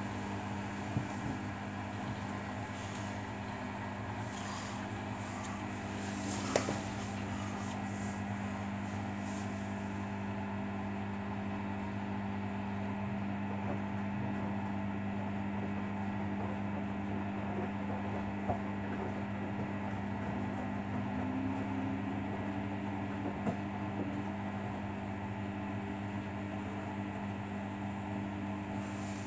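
A front-loading washing machine hums as its motor turns the drum.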